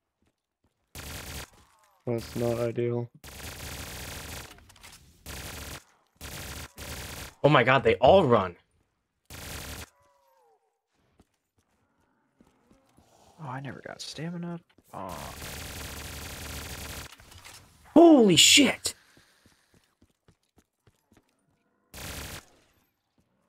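Rapid gunfire bursts in short volleys.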